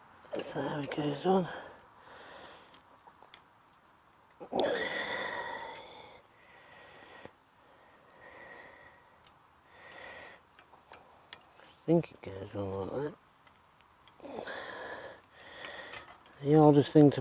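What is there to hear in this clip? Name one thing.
A bicycle's parts click and rattle faintly as they are handled.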